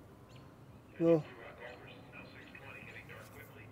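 A man exclaims briefly after the shot.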